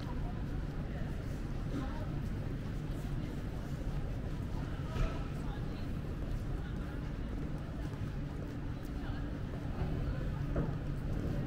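A steady low city rumble fills the open air.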